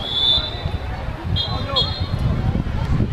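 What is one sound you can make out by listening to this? A referee's whistle blows in short blasts.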